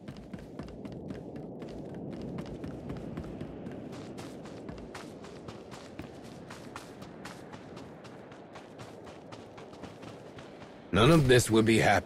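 Quick footsteps patter on a hard path.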